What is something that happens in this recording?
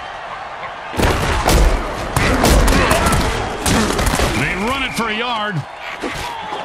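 Armoured players crash and thud together in a tackle.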